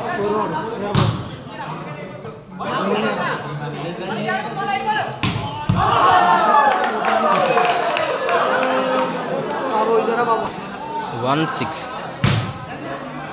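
A ball is struck with sharp slaps.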